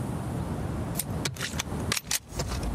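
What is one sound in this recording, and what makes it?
Metal parts of a pistol click and clack as they are handled.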